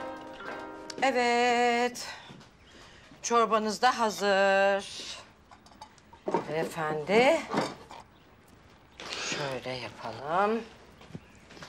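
A woman sings loudly and playfully nearby.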